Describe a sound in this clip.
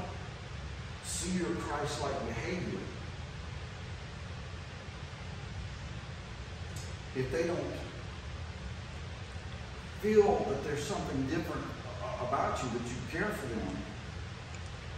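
A man speaks calmly and deliberately in a room with a slight echo, pausing between phrases.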